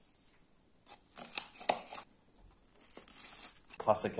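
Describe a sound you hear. A knife cuts through toasted bread with a crunch.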